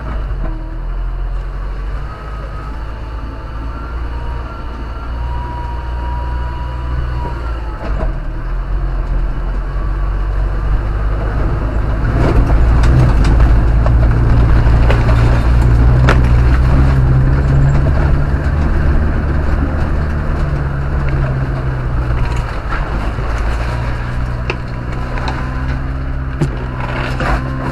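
A car engine drones steadily, rising as the car climbs.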